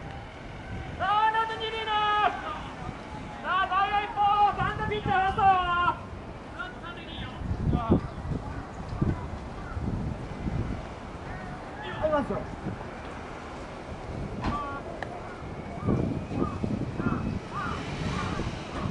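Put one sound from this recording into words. Young men chant and shout loudly outdoors.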